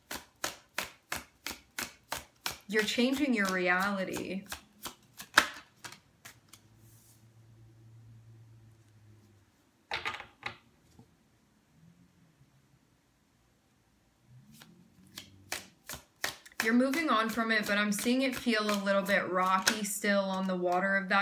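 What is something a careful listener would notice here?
Playing cards flick and snap as they are shuffled.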